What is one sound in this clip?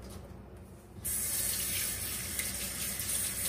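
Water runs from a tap and splashes into a bowl.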